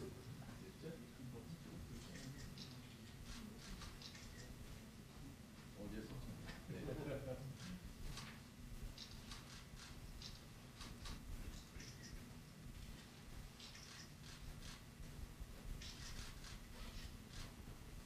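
A crowd of men and women murmurs and chatters in a large room.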